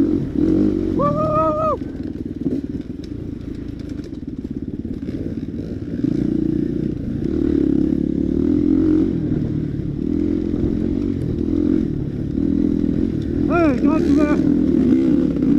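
Other dirt bike engines buzz nearby.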